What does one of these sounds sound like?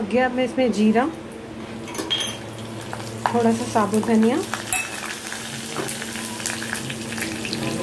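Seeds sizzle and crackle in hot oil.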